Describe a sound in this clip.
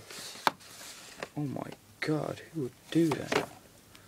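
Plastic cases knock and rattle as a hand pulls them from a shelf.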